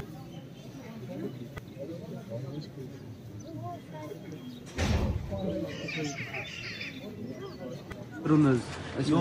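Many men murmur and chant together outdoors.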